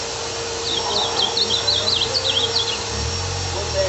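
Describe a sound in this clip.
A caged bird sings a quick series of chirps.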